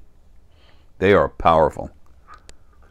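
An older man speaks briefly and calmly, close to a microphone.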